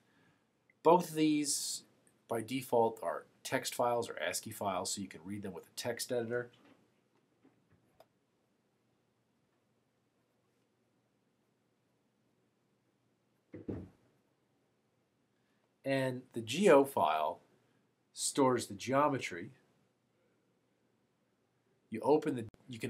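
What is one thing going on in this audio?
A middle-aged man speaks calmly and clearly into a close microphone, in short bursts with pauses.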